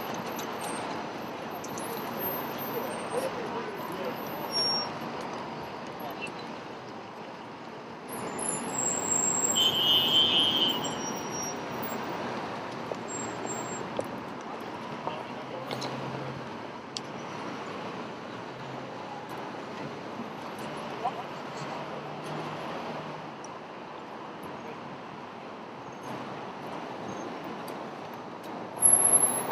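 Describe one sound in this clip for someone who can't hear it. Busy city street traffic hums steadily outdoors.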